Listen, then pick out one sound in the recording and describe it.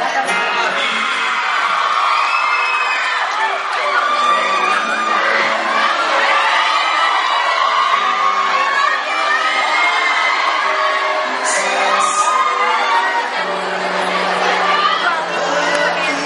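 A young man sings into a microphone through loudspeakers in a large hall.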